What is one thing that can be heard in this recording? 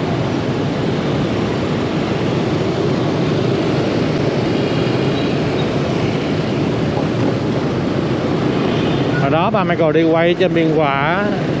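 Many motor scooters hum and buzz in dense traffic.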